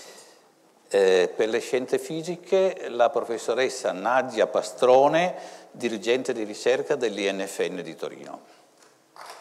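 An elderly man speaks into a microphone, reading out calmly in a large echoing hall.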